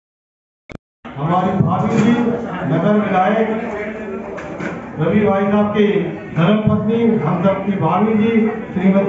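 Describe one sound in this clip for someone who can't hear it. A woman sings through a loudspeaker.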